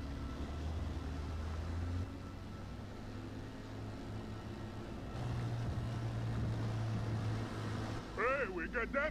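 A motorboat engine drones over the water.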